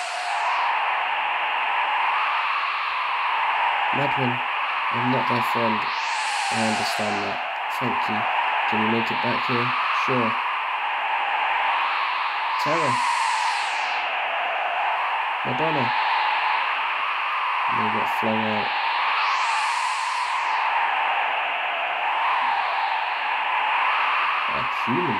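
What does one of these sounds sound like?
Gentle game music plays steadily with slow swells.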